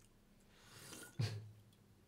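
A young man gulps down a drink.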